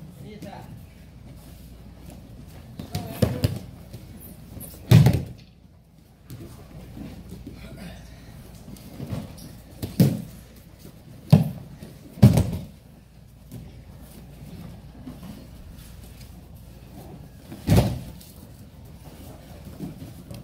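Bare feet shuffle and slide on a mat.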